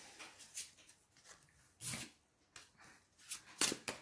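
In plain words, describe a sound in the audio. A card slides and taps onto a wooden table.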